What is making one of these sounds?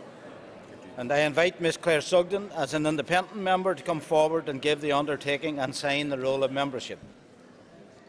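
A man speaks firmly through a microphone in a large hall.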